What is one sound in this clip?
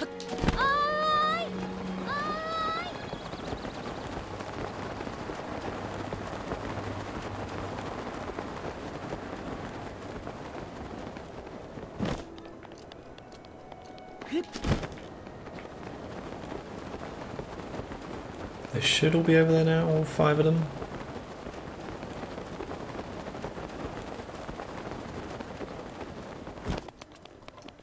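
Wind rushes steadily past during a long glide.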